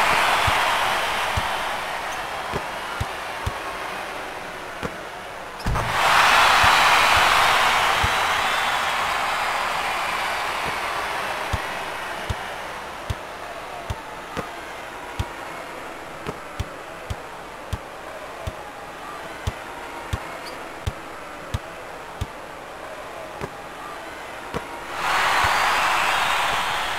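A crowd cheers loudly, swelling and fading.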